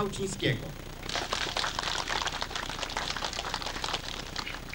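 A small group of people applaud.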